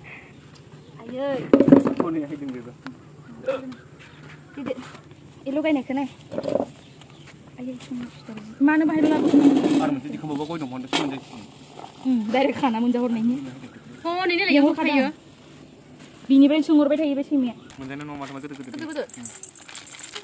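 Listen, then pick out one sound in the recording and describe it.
Young women talk and chat nearby.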